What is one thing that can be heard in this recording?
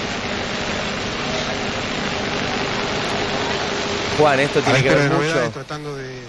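A crowd of men talks and calls out all around.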